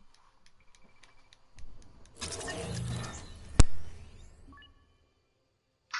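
A game chime sounds a short countdown.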